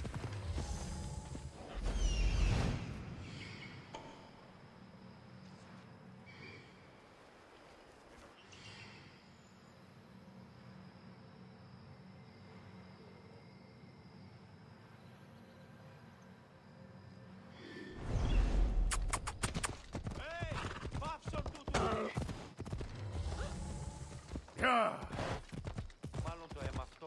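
A horse gallops, its hooves thudding on a dirt path.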